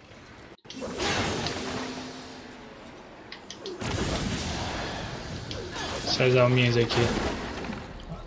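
Game combat sounds clash and whoosh.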